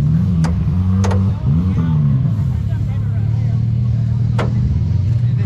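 Metal tools clink against a vehicle's parts.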